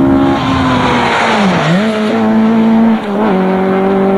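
A rally car's engine note drops as it speeds past.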